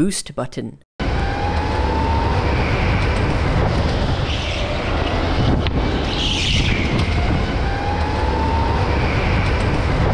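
Go-kart engines buzz and whine loudly and steadily close by.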